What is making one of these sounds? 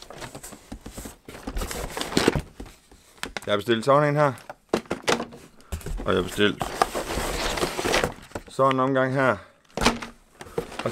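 Cardboard rustles and scrapes as a man rummages in a box.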